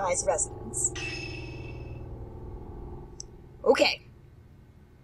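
A young woman speaks briefly into a microphone, close by.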